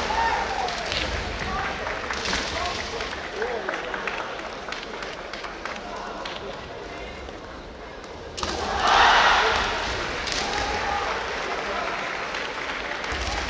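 Masked fencers let out loud, sharp shouts.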